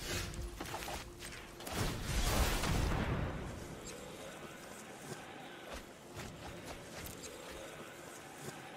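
Short whooshing and chiming game sound effects play.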